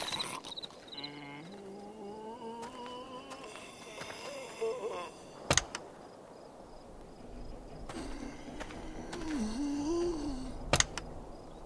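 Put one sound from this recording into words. A zombie groans and moans.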